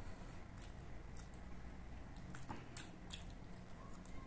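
Fingers squish and tear soft cooked meat close up.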